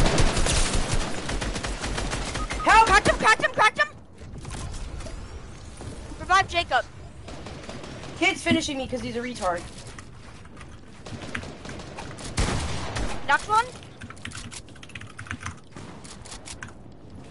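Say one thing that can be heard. Game gunshots fire in quick bursts.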